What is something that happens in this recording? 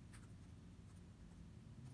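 Fingers tap on laptop keys.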